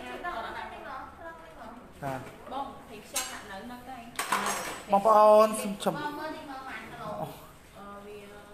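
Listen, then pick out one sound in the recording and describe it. Several women talk nearby with animation.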